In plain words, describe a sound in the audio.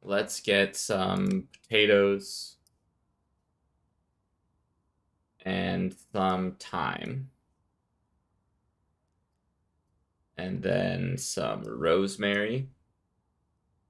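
A young man speaks calmly, close to a microphone, in short bursts.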